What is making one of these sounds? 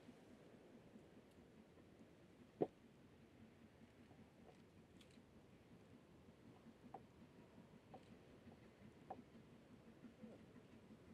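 A distant steam train chuffs steadily across open country.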